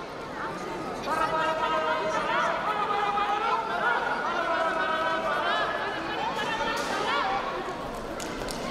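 A young man sings through a microphone over loudspeakers in a large hall.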